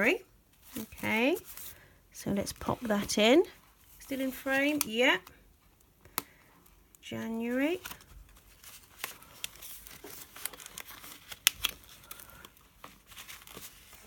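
Stiff paper pages rustle and flip.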